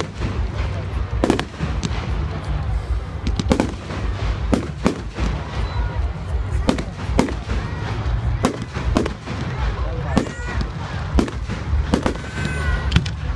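Fireworks bang and crackle repeatedly nearby.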